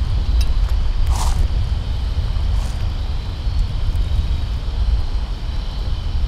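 Metal spoons clink against a tin can.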